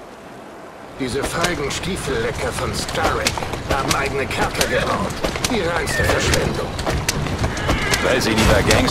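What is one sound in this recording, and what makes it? Carriage wheels rattle over a cobbled street.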